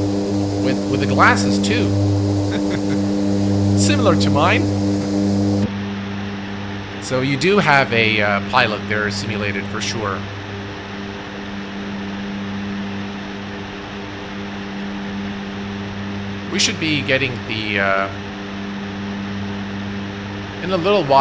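Propeller engines drone steadily.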